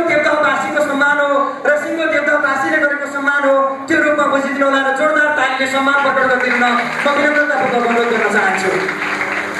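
A man speaks into a microphone over loudspeakers, announcing with animation.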